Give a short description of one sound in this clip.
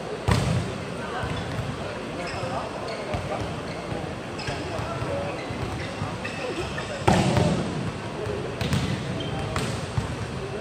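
Sport shoes squeak sharply on the court floor.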